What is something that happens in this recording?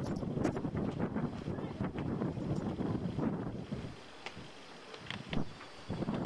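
A flag flaps in the wind.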